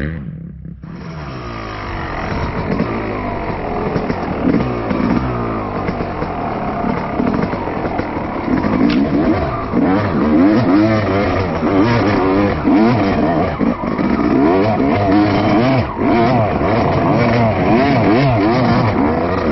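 A motorbike engine revs hard, rising and falling as it climbs.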